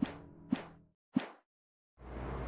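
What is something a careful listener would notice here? Short menu chimes ring out one after another.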